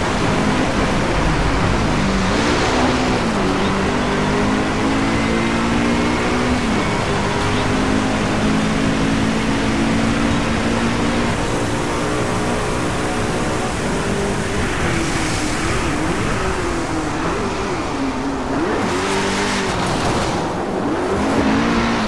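Rain patters on a car's windscreen.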